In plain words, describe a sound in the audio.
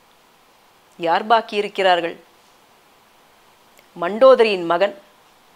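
A middle-aged woman speaks calmly into a clip-on microphone, in short phrases.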